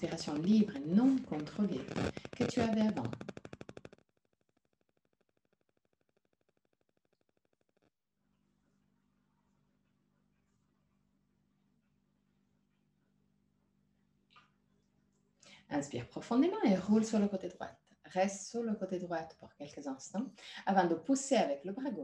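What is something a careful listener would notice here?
A young woman speaks calmly into a microphone over an online call.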